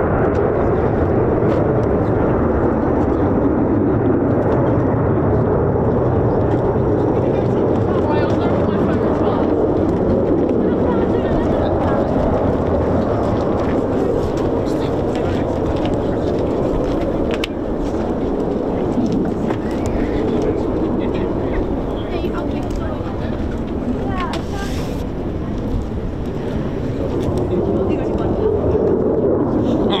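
A jet engine roars loudly overhead, rumbling steadily throughout.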